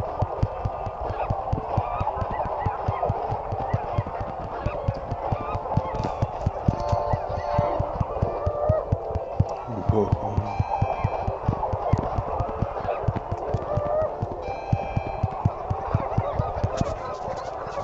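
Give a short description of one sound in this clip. Boxing gloves thump rapidly against a cartoon boxer.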